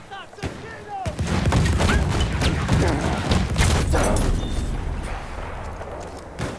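A loud explosion booms close by and rumbles away.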